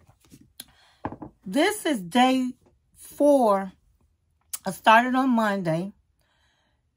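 A woman speaks expressively and close to a microphone.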